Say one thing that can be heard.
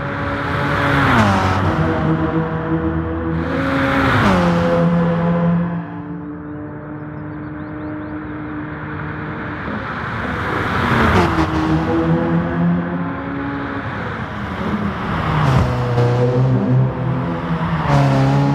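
A hybrid racing prototype's engine roars past at high speed, its pitch dropping as it goes by.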